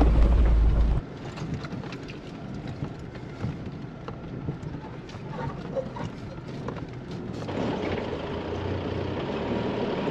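A car engine hums inside a cab while driving on a bumpy track.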